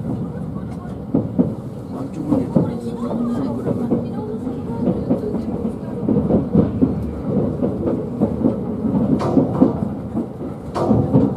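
Train wheels clack over the rail joints.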